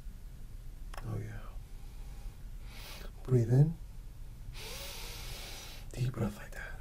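A man speaks calmly and briefly close to a microphone.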